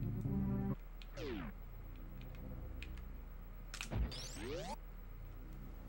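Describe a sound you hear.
Video game sound effects sweep up and down in pitch.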